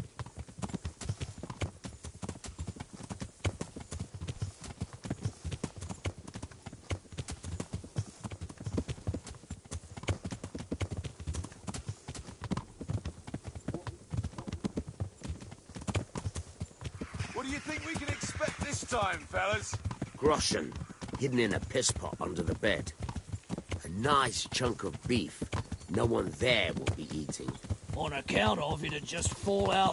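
Horses' hooves pound rapidly along a dirt track.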